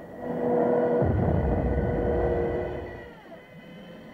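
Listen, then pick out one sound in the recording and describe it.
A bomb explodes with a deep rumbling blast.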